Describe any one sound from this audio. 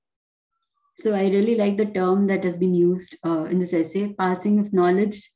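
A woman speaks steadily through an online call.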